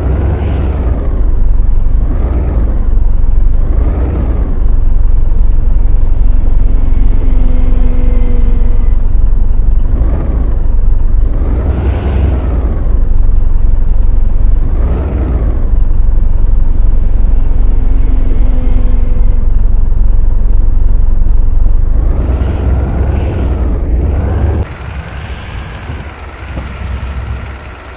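A bus engine rumbles low and steadily, swelling and easing as it revs.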